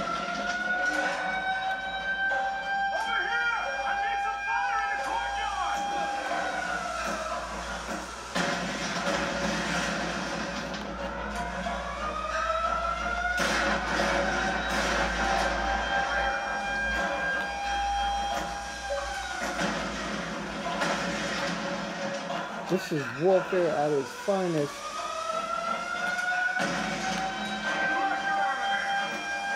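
Music and game sound effects play from a television.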